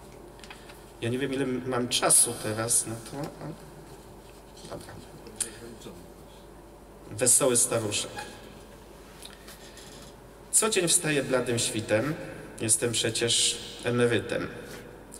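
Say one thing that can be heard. A man reads aloud calmly into a microphone, pausing between lines.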